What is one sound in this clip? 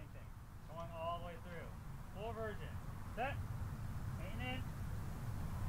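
A man calls out loudly outdoors.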